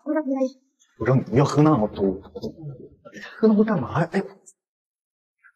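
A young man speaks anxiously to a friend.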